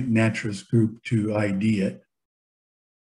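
A middle-aged man speaks calmly into a microphone, heard as over an online call.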